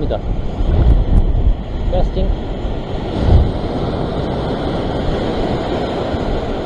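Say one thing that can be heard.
Waves crash and surge against rocks close by.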